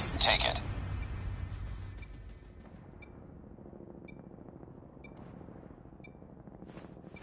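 A short electronic beep sounds once a second in a countdown.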